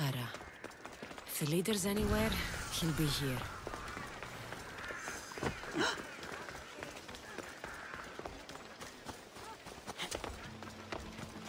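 Footsteps patter quickly on stone paving.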